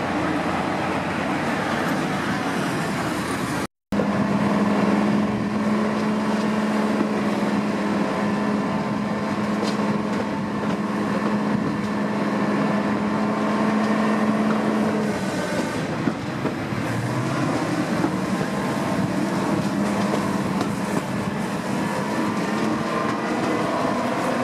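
Train wheels rumble and clatter over the rails.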